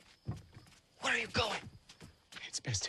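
A young man speaks tensely nearby.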